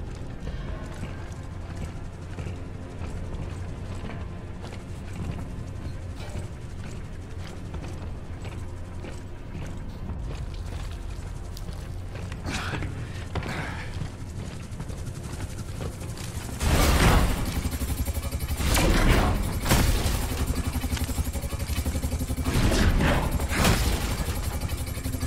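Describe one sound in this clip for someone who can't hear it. A low mechanical drone hums steadily.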